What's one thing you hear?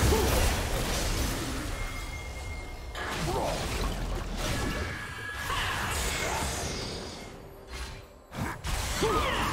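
Magic spells whoosh and crackle in quick bursts.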